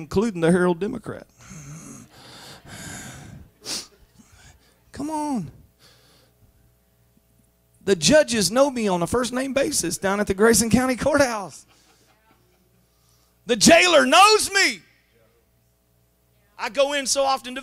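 A man preaches with animation through a microphone and loudspeakers, pausing often.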